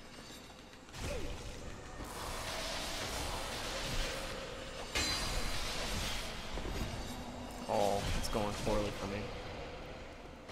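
A sword swings and clashes in a fight with game sound effects.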